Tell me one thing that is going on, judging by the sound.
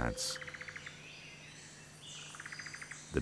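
A small bird gives a rapid buzzing trill nearby.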